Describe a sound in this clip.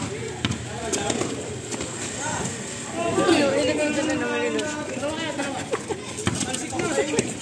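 Young men shout and call out to each other during a game.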